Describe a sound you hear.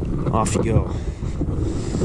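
A fish splashes as it is let go into water.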